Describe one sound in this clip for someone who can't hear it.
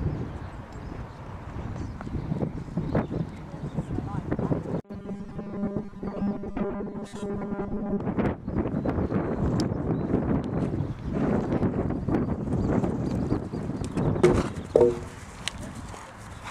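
A horse's hooves thud on grass as it canters.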